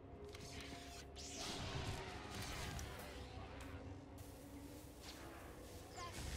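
A lightsaber hums and clashes in quick strikes.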